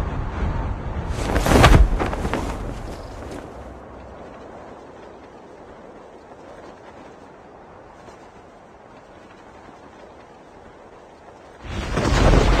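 Wind rushes steadily during a parachute descent.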